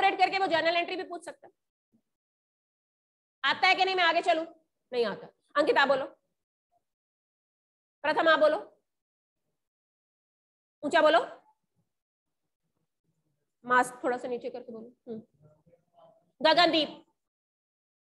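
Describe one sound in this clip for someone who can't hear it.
A young woman speaks with animation into a close microphone, in short bursts with pauses.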